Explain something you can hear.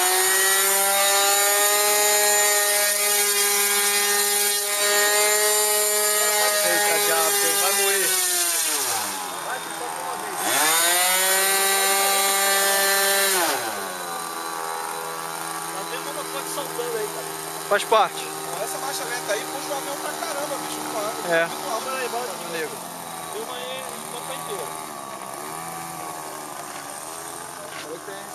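A model plane's small engine whines loudly, drops, surges again, then settles to a lower buzz.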